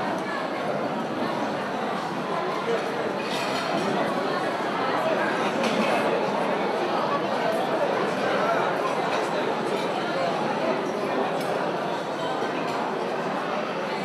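Many men chatter at once in a large room.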